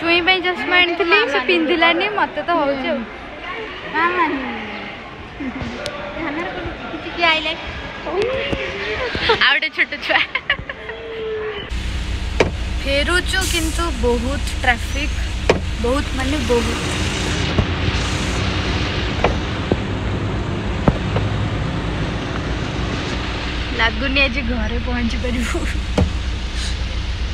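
A young woman talks cheerfully and close to the microphone.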